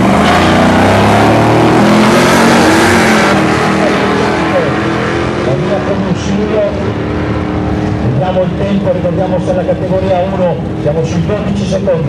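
Two race car engines roar loudly as the cars launch and speed away, fading into the distance.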